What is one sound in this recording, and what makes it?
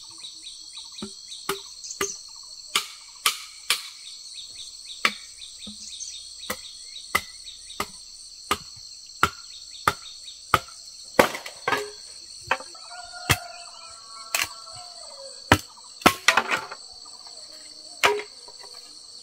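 A machete chops wood with sharp, regular blows.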